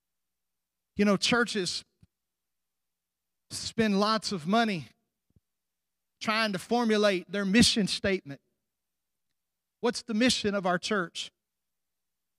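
A middle-aged man speaks with animation through a microphone, with pauses between phrases.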